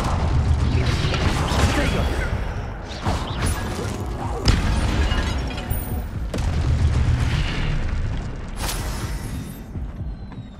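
A magic blast booms and crackles loudly.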